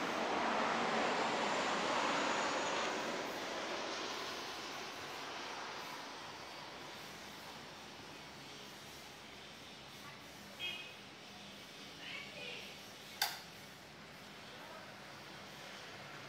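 Metal parts clink and clank as someone works on an engine.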